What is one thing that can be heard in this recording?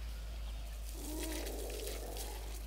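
A pig grunts nearby.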